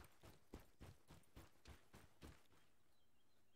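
Footsteps tread quickly over the ground.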